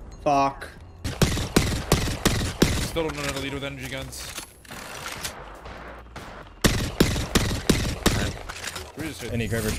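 Rifle shots crack.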